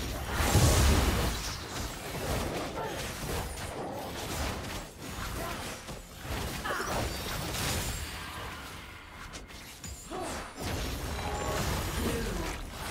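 Spell effects whoosh and crackle in a fast fight.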